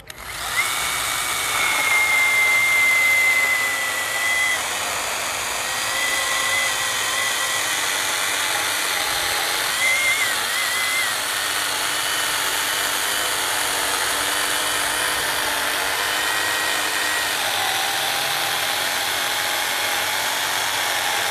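An electric chainsaw whines steadily as it cuts through a thick log.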